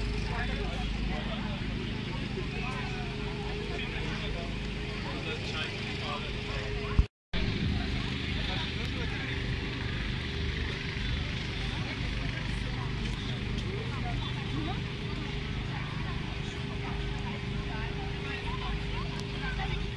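A crowd of men, women and children chatters all around outdoors.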